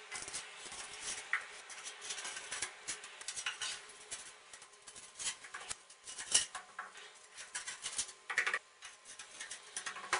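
Ceramic tiles click and scrape into place.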